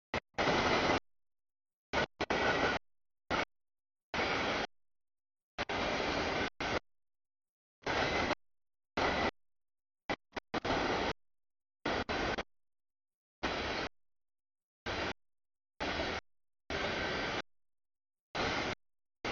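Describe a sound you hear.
A freight train rumbles and clatters past nearby, with the sound cutting in and out.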